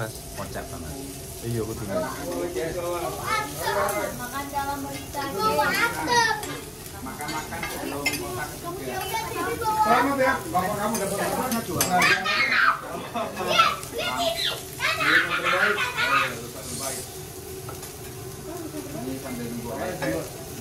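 Several people chatter around a table.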